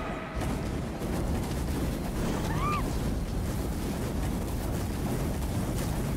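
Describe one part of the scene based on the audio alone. Flames whoosh and crackle.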